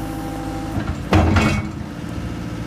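A loader's bucket clanks sharply.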